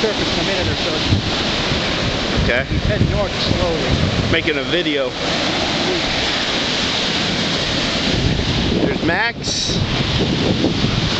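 Waves crash and wash up on a beach.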